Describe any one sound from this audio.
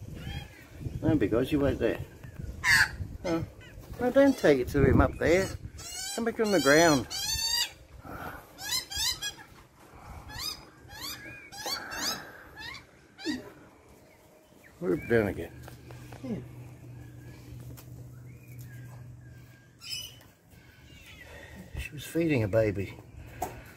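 Magpies carol with loud, warbling calls close by.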